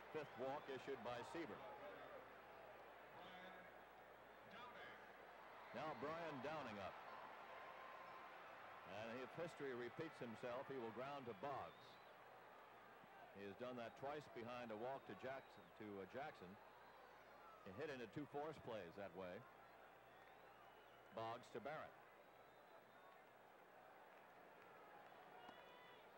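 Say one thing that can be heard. A crowd murmurs in a large open stadium.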